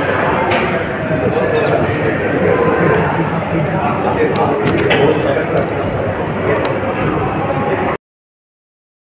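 A crowd of men murmurs and chatters nearby.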